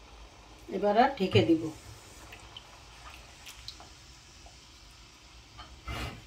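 A spatula scrapes and stirs in a pan.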